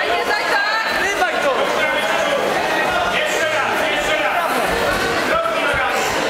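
A crowd of men and women shout and cheer in a large echoing hall.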